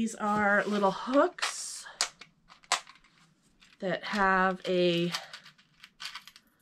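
Plastic packaging crinkles and rustles in a woman's hands.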